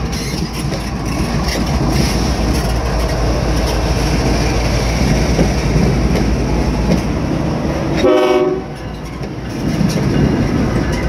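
Diesel locomotives rumble loudly past close by.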